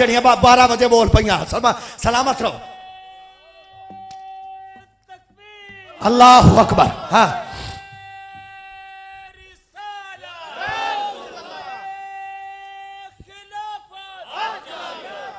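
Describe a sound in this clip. A man sings loudly through a microphone and loudspeakers, holding long notes.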